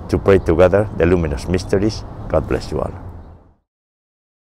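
A middle-aged man speaks calmly, close to a microphone.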